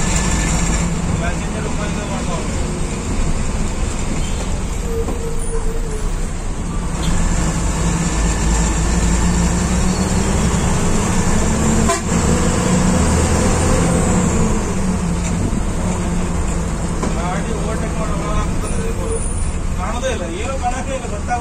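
A bus engine rumbles steadily from inside the cab.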